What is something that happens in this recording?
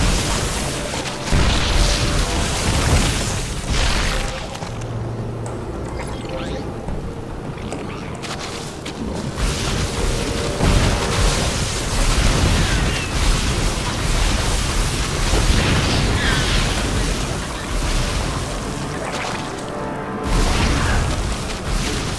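Rapid gunfire and explosions crackle in a battle.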